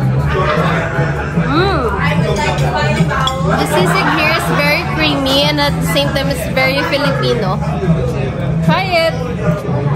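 A young woman talks animatedly close by.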